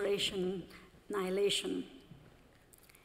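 A woman speaks calmly into a microphone in a large echoing hall.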